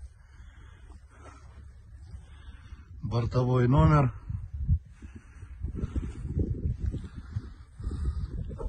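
Wind blows across an open field, rumbling against the microphone.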